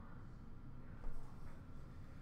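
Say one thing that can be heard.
A plastic card case is set down on a glass counter with a light tap.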